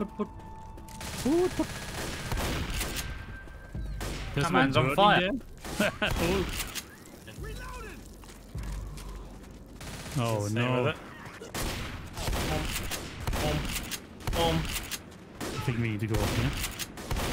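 Shotgun blasts boom sharply.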